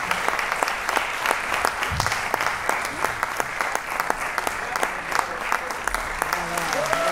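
A small ensemble plays lively music in a hall.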